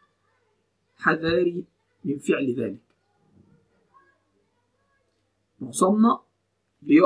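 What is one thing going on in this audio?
A young man speaks calmly in short bursts, close to a microphone.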